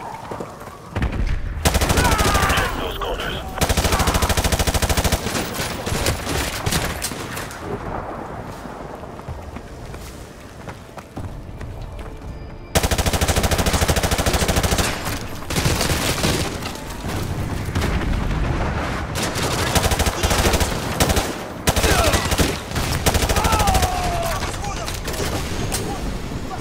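Rapid automatic gunfire bursts loudly and echoes.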